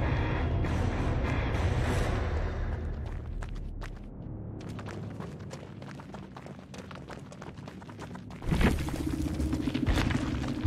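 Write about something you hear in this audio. Quick footsteps run through dry grass.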